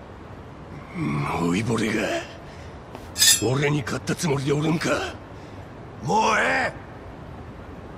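A younger man shouts aggressively.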